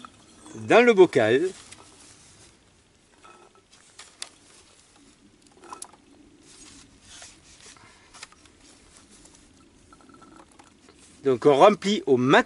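Olives rattle and clatter into a glass jar.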